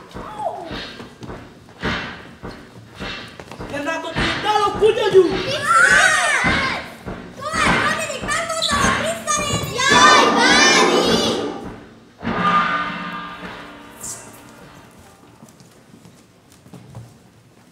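Footsteps thump on a wooden stage.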